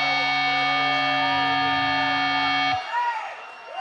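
An electric guitar drones loudly through amplifiers and then cuts off.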